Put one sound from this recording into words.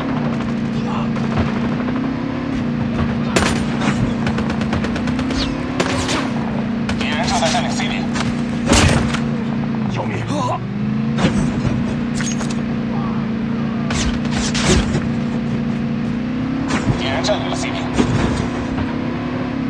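A vehicle engine hums steadily as it drives along.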